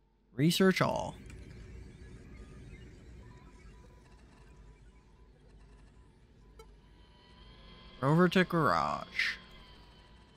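Short electronic chirps sound as menu items are chosen.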